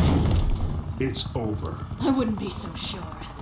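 A woman speaks close to a microphone.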